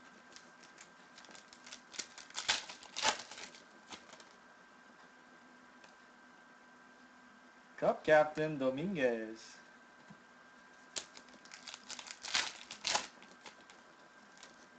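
Foil wrappers crinkle and rustle as hands tear open packs.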